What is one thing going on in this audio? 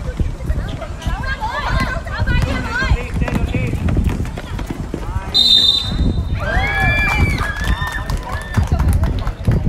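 Young players shout and call out.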